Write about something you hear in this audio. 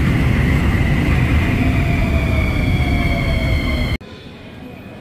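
A subway train rumbles loudly past with squealing wheels.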